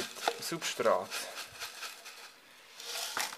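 Water pours and splashes into soil in a pot.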